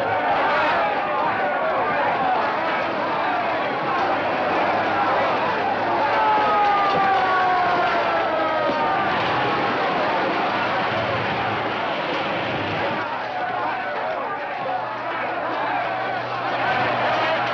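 A crowd of men shouts and yells excitedly.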